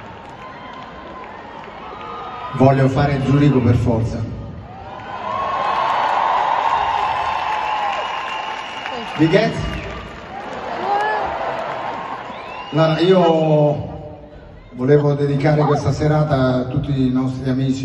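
A large crowd cheers and sings along.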